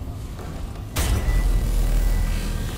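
A loud deep whoosh suddenly swells up.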